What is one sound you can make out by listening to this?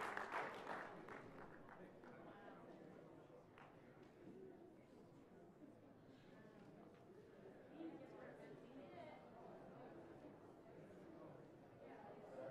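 A crowd murmurs and chats in a large hall.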